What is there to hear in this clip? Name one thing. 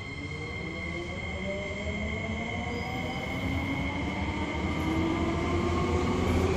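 Wheels rumble on the rails beneath an electric subway car.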